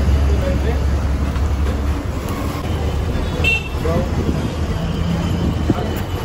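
Motorbikes buzz past in street traffic.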